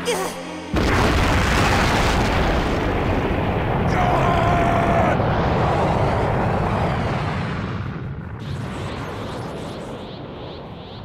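A huge explosion roars and rumbles, then slowly dies away.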